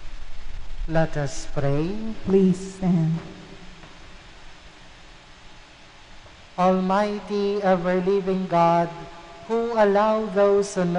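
A man sings a chant through a microphone in a large echoing hall.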